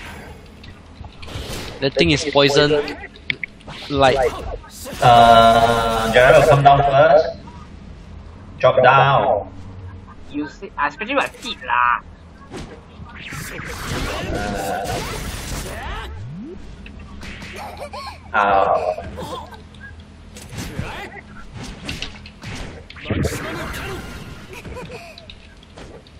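Sword strikes and magic blasts clash and burst in quick bursts.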